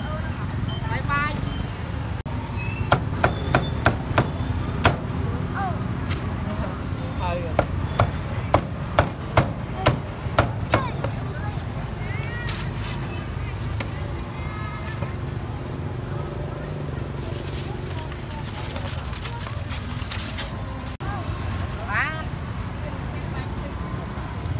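A busy street market murmurs with distant chatter and traffic.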